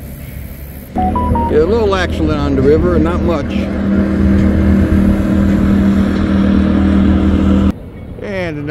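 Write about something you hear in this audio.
A motorboat engine drones steadily as the boat speeds across the water.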